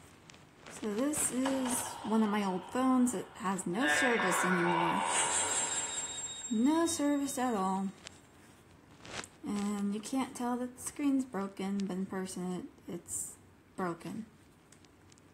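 A phone plays a startup sound through its small speaker.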